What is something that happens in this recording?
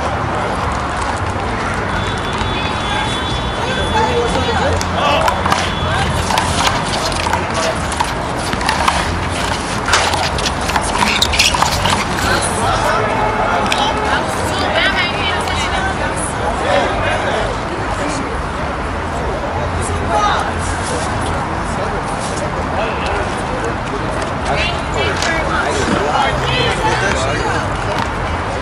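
A crowd of people chatter outdoors in the background.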